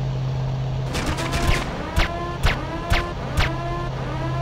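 A gun fires several sharp shots.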